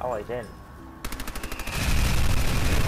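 A submachine gun fires a rapid burst of shots.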